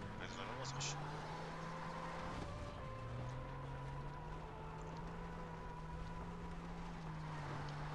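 A vehicle engine hums steadily while driving.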